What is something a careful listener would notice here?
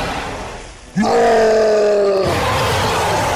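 A large creature lets out a long, loud roar.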